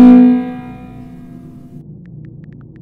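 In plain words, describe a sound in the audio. A game alert tone rings out and fades.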